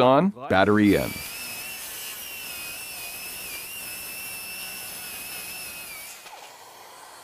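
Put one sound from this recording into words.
A circular saw whines steadily as it runs and cuts wood.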